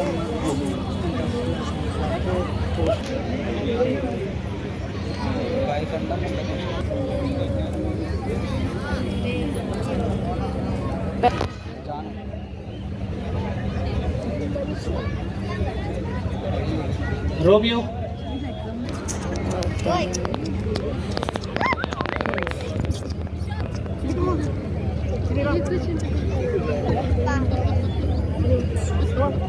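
A crowd of people chatters loudly all around, outdoors.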